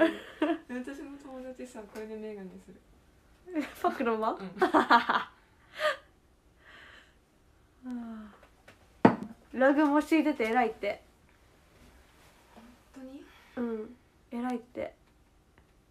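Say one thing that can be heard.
A young woman laughs and giggles close to a microphone.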